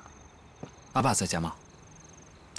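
A young man asks a question calmly.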